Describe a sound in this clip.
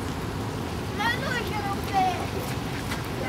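A small girl calls out in a high voice.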